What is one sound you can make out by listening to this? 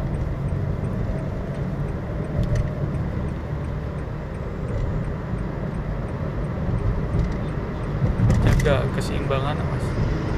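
A heavy truck rumbles alongside, close by.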